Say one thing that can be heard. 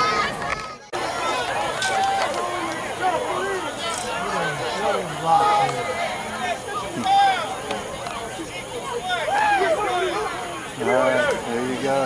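A crowd chatters in the distance.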